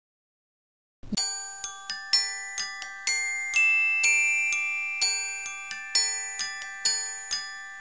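A baby's mobile plays a tinkling music-box tune.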